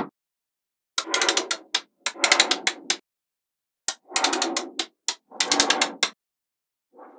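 Magnet balls rattle and clatter on a hard surface.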